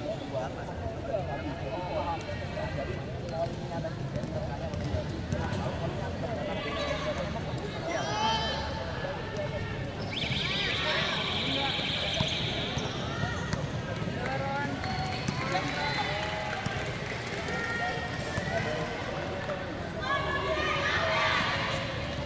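Young men and women chatter and call out nearby in a large echoing hall.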